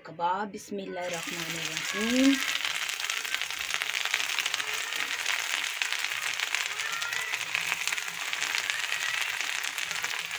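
Hot oil sizzles and crackles loudly as patties fry.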